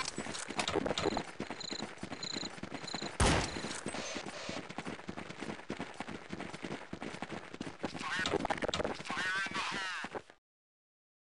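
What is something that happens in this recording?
Footsteps thud quickly on hard ground.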